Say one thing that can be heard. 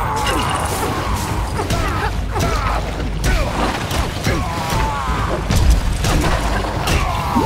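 Punches and thuds land in a cartoonish brawl.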